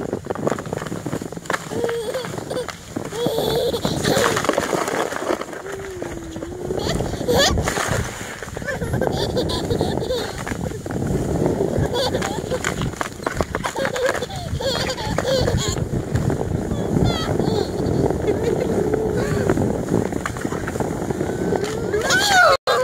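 A baby giggles and squeals with delight close by.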